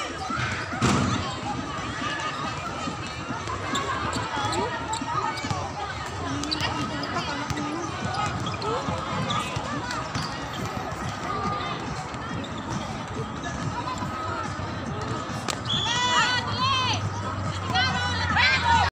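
Young women chatter and call out outdoors.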